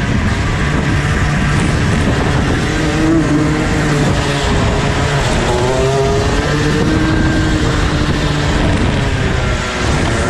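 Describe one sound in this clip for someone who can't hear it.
Another kart engine buzzes nearby as it passes.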